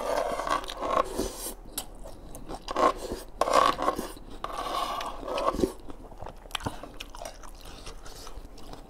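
A man chews food wetly, close up.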